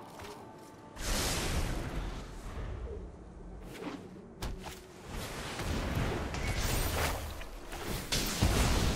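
Magical whooshing game effects swell and chime.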